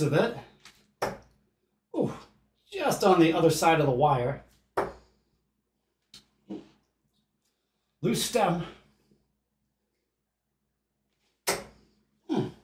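Darts thud into a dartboard one at a time.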